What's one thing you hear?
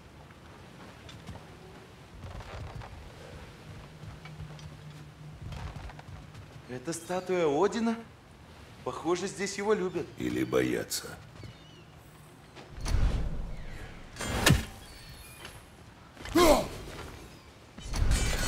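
Heavy footsteps thud on wooden boards.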